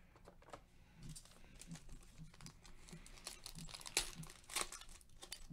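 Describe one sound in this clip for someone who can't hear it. A foil wrapper tears open with a crackling rustle.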